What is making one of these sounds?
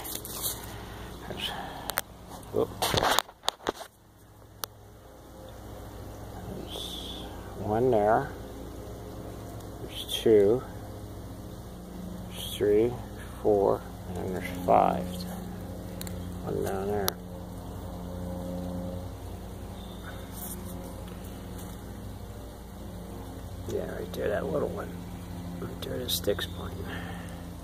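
A small stream trickles softly nearby.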